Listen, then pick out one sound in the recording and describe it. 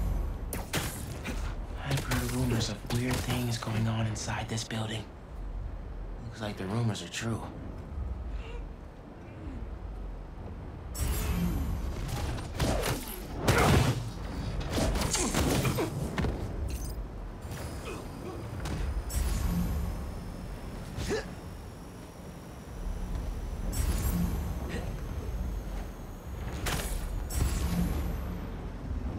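Game sound effects whoosh as a character swings through the air.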